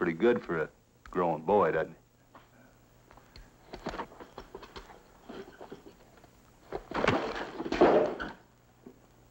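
An older man speaks in a low, weary voice, close by.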